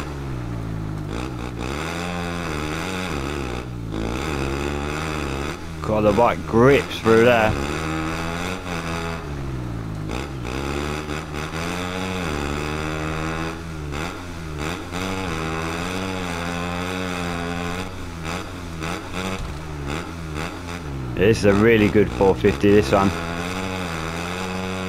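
A motorbike engine whines and revs steadily, rising and falling in pitch.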